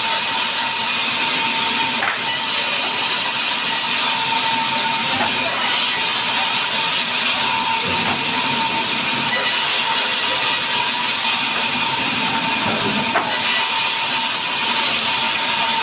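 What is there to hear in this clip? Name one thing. A saw blade cuts through a wooden log.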